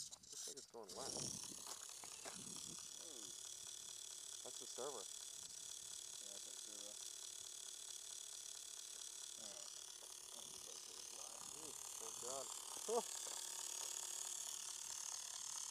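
A small electric motor whirs with a steady high whine.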